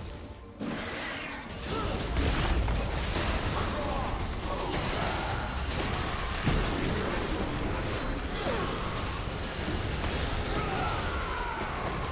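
Magical blasts and whooshing spell effects crackle.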